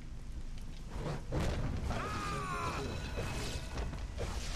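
Magical blasts and shattering ice burst in quick crashes.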